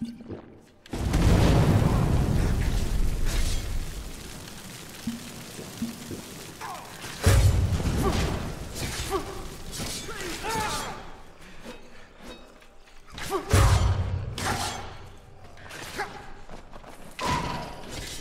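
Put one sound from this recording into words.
A sword slashes and thuds into flesh.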